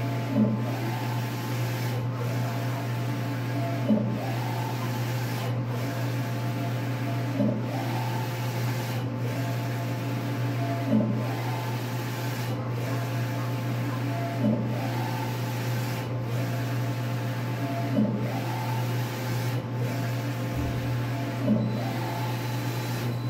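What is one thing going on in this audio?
A large printer hums steadily.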